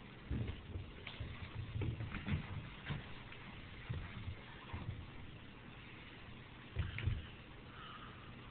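A small animal drags a strip of paper towel across a carpet, rustling and thumping.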